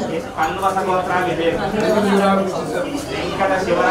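A man chants steadily nearby.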